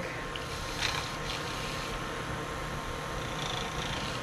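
A stick scrapes and taps inside a plastic cup while stirring liquid.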